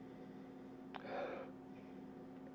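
A man sniffs deeply.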